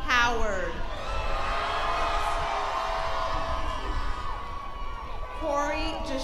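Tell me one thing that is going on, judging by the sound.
A crowd cheers and applauds outdoors.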